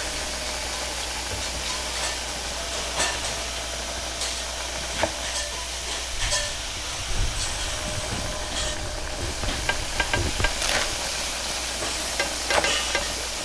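Noodles sizzle in a hot wok.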